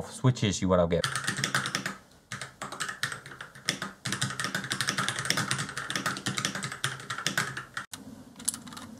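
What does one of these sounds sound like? Keyboard keys clack rapidly under typing fingers.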